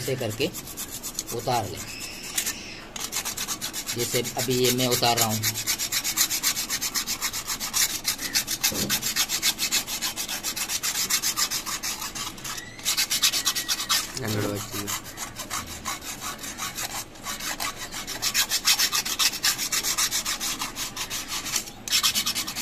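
A metal blade scrapes rapidly back and forth across a metal surface.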